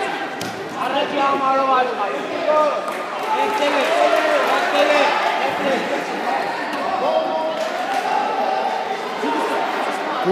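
Spectators talk and shout in a large echoing hall.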